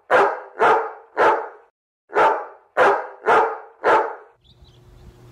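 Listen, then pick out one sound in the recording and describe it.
A dog barks loudly in short, sharp bursts.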